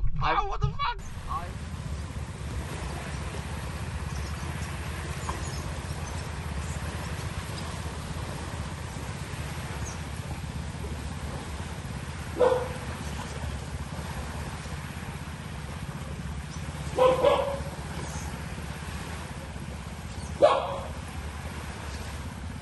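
Small waves lap gently against a shore.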